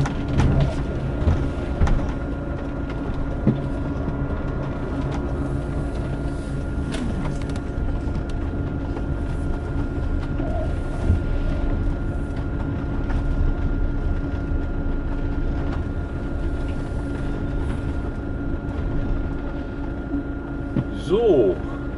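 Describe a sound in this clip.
A vehicle engine hums steadily, heard from inside.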